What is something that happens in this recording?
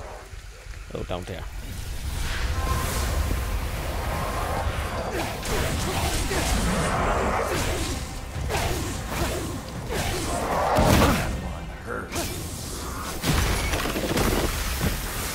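Gunfire and blasts crackle in rapid bursts.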